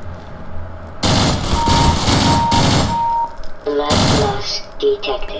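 Rapid gunfire blasts loudly in bursts.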